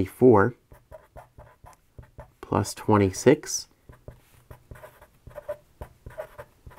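A marker squeaks across paper.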